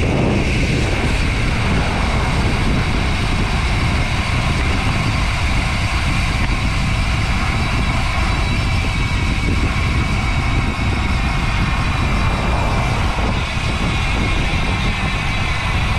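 Wind rushes loudly past, outdoors on a moving bicycle.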